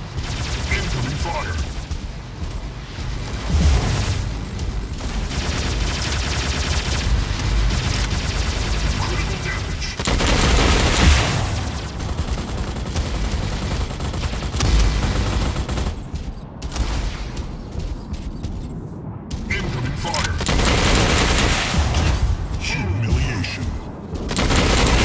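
Laser guns fire in a video game.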